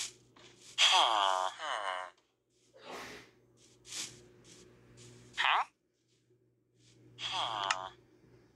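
A villager grunts in a low, nasal, falling tone several times.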